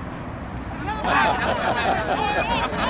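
A young man shouts and laughs excitedly close by.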